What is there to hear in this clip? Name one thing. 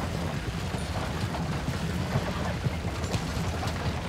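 A horse-drawn wagon rumbles over a gravel road.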